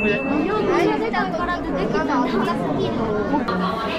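A crowd of adults and children chatter nearby.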